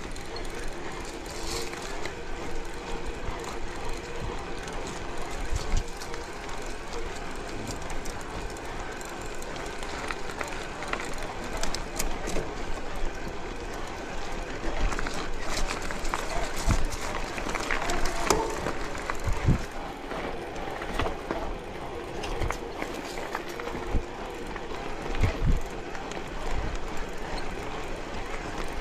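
Bicycle tyres crunch and rattle over a rough gravel track.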